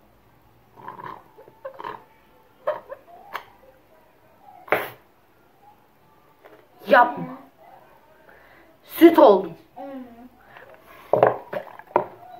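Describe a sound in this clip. A boy drinks from a bottle.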